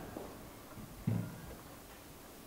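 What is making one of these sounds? A wooden chair scrapes on the floor.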